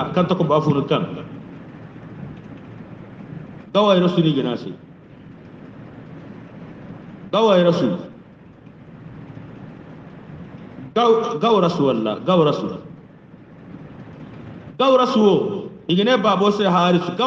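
A man chants loudly through a microphone and loudspeaker, in bursts with pauses between.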